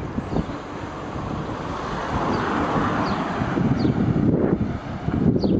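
A car approaches and drives past close by.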